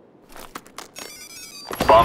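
An electronic device beeps in a steady pattern.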